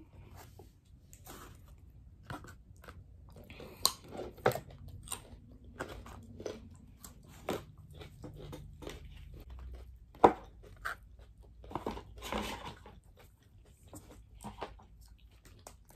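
Crispy food crunches as people chew.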